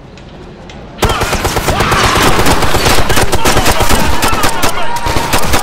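Rapid gunfire rattles loudly and without pause.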